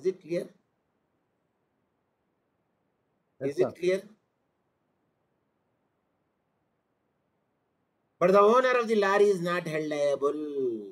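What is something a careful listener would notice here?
An older man speaks calmly into a microphone in short phrases with pauses.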